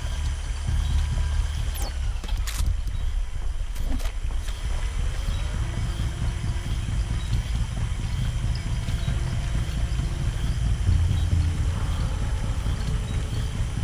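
Footsteps shuffle softly over the ground.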